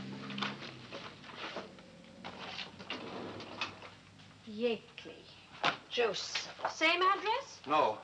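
Papers rustle as a woman handles them.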